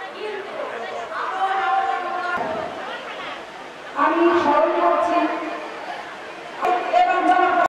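A large crowd of women chants slogans in unison outdoors.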